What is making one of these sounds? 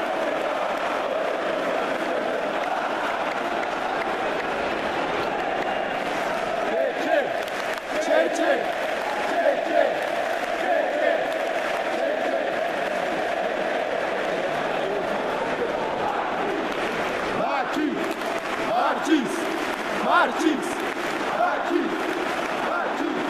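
A large stadium crowd roars and chants steadily, all around.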